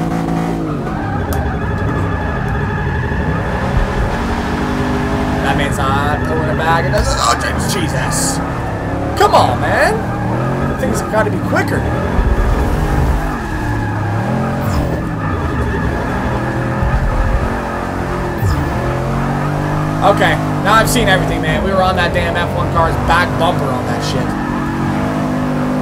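A racing car engine roars and revs up and down throughout.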